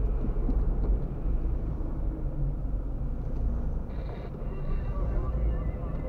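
A van passes by closely in the other direction.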